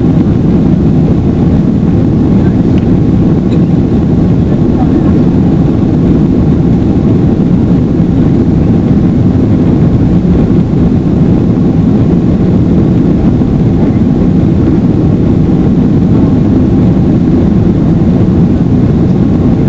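A jet airliner's engines roar steadily, heard from inside the cabin.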